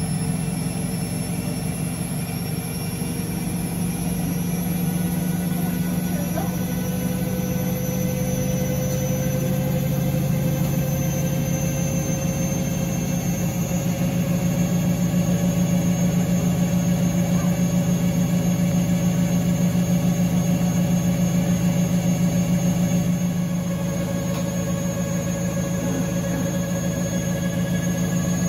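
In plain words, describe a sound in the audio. A washing machine hums steadily as its drum spins with a rhythmic whir.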